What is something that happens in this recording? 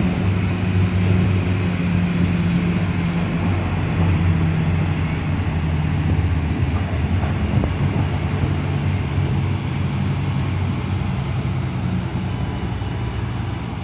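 Large tyres crunch slowly over gravel.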